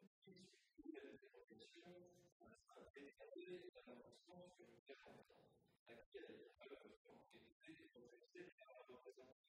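An older man reads out a text through a microphone.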